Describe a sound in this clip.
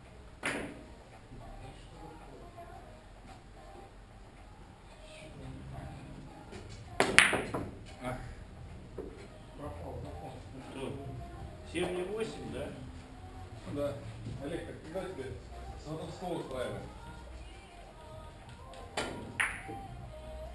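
Billiard balls clack sharply together.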